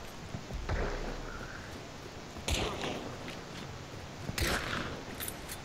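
A shotgun fires loudly, again and again.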